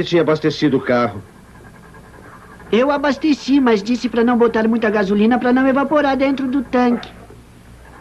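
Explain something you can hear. A man sings loudly close by.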